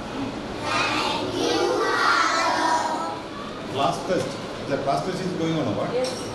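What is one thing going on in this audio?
A group of children sing together.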